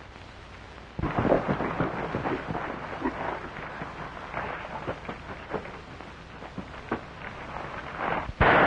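Horse hooves pound on dirt.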